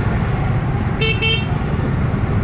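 A motorbike horn beeps twice.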